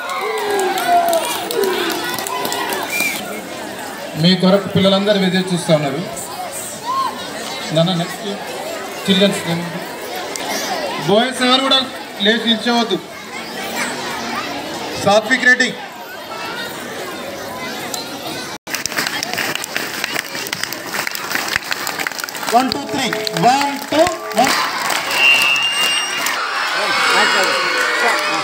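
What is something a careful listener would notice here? A crowd of children chatters in the background.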